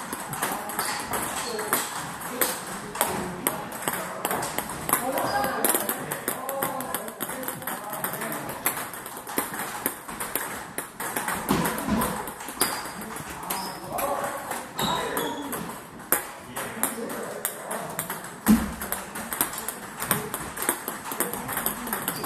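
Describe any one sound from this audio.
Table tennis balls click rapidly against paddles and tables, echoing in a large hall.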